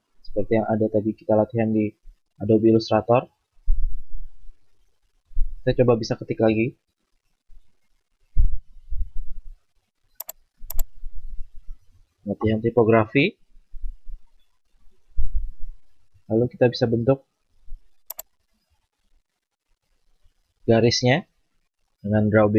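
A young man talks calmly into a close microphone, in short phrases with pauses.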